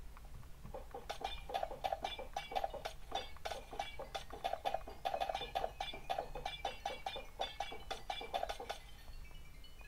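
Small bright chimes tinkle rapidly, one after another.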